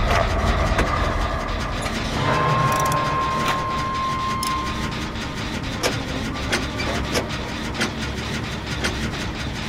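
A motor engine rumbles and clanks steadily close by.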